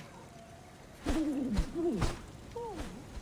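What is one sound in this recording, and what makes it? An owl's wings flap as it takes off.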